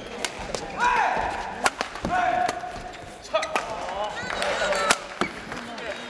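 Shuttlecocks smack off rackets in quick rallies in a large echoing hall.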